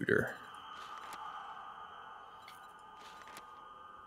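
A soft menu click sounds.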